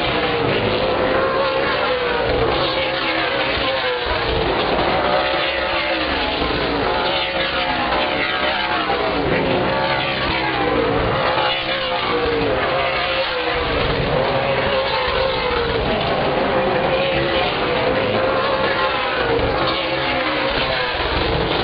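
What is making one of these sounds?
Race car engines roar loudly, rising and falling in pitch as the cars pass.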